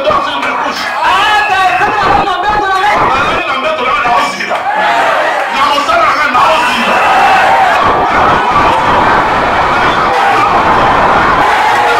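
A man speaks forcefully into a microphone through loudspeakers.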